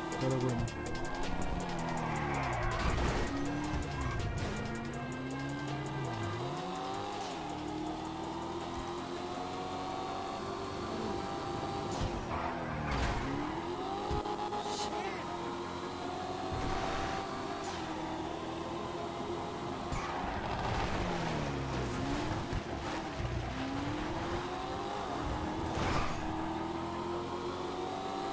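A car engine revs hard, rising and dropping in pitch as it shifts gears.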